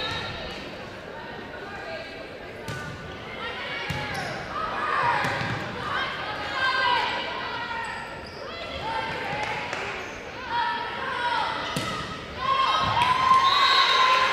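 A volleyball is struck with sharp thuds.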